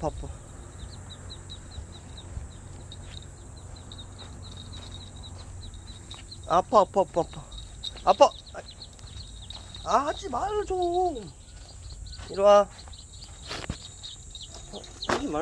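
Footsteps in sandals pad across grass.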